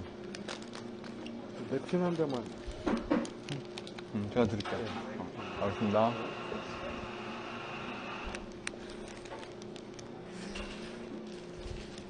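A man chews and munches food loudly close to a microphone.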